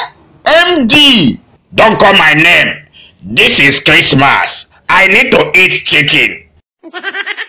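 A man speaks loudly and excitedly.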